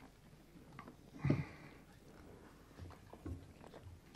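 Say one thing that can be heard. A young man sips water from a glass.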